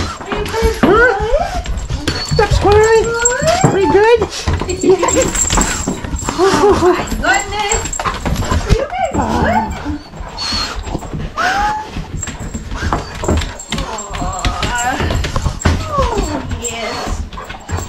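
Dogs whine and whimper excitedly close by.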